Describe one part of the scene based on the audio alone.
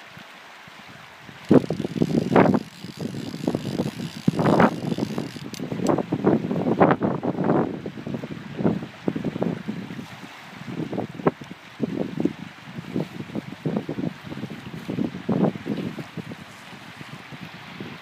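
A river flows and babbles nearby.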